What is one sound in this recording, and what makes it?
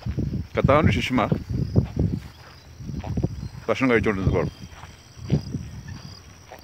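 A man speaks calmly and close up, outdoors.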